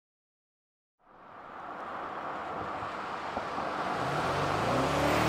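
A car's tyres hiss on a wet road as it approaches.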